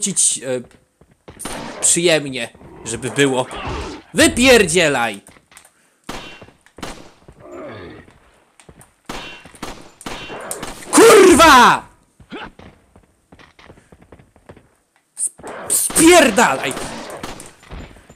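Pistol shots fire in short bursts.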